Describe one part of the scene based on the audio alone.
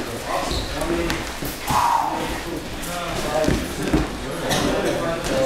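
Several young men chatter and call out in a large echoing room.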